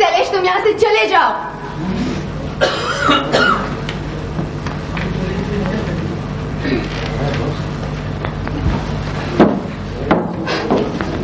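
A man and a woman speak loudly and theatrically in an echoing hall.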